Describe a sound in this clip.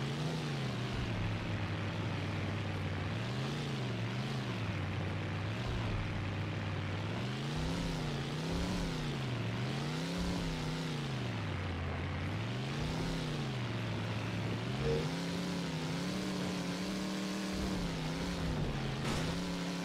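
A car engine revs up and down repeatedly as the car races.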